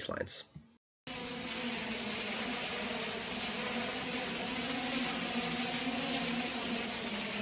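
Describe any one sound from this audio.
A small drone's propellers whir steadily.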